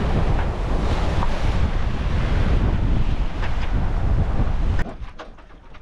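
Waves rush and splash against a boat's hull.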